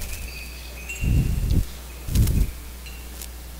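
Footsteps thud on the floor nearby.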